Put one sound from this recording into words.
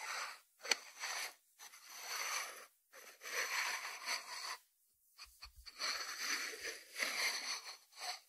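Fingertips rub and brush across a ceramic lid.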